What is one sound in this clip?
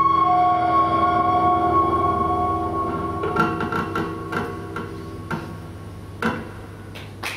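A double bass plays low notes.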